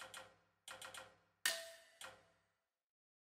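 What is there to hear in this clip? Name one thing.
Short menu blips sound in quick succession.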